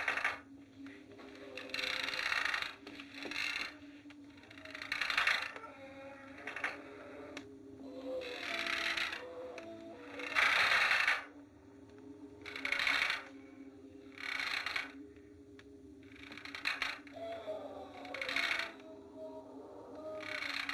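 A shotgun clicks and clacks as it is handled and loaded.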